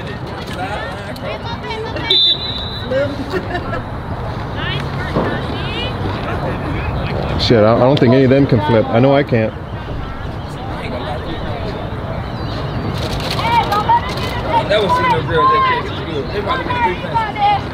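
Girls and women talk and call out nearby outdoors.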